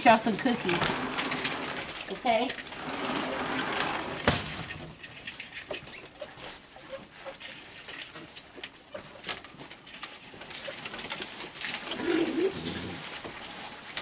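Raccoons chitter and squeal.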